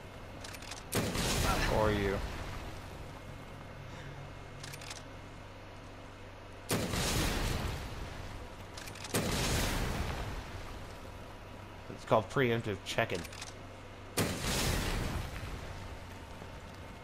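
A grenade launcher fires with loud, booming blasts.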